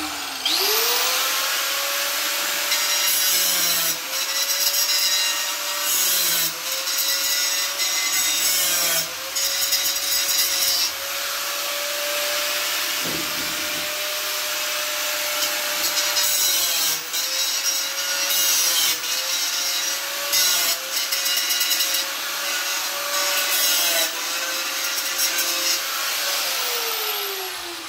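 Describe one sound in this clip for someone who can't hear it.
An angle grinder whines steadily and dips in pitch as it grinds against wood.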